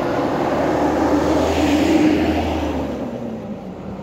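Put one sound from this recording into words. A truck engine rumbles past nearby and fades away.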